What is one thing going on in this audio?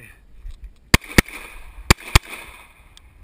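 Pistol shots crack in quick succession outdoors.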